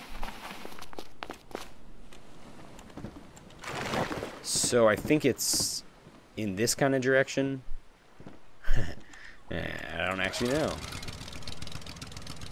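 Water laps gently against a raft.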